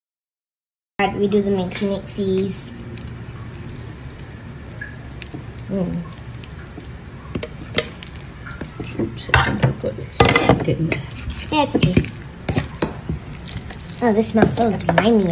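A fork mashes and stirs soft food, scraping against a glass bowl.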